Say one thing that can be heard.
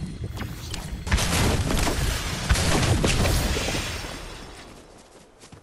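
A loud rushing whoosh swells and then fades away.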